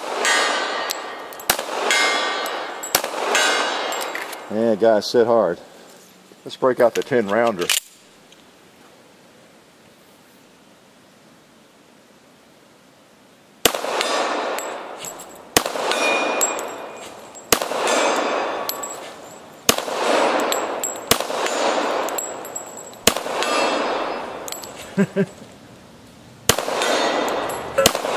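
Pistol shots crack loudly outdoors, one after another, each echoing away.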